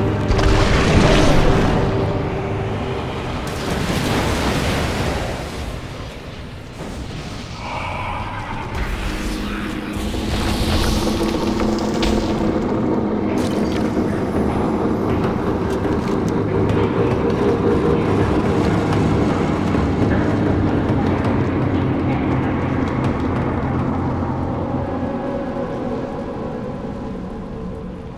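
Magic spells whoosh and burst in a battle.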